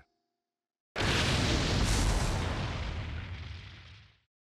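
A huge blast erupts with a deep roar and slowly fades.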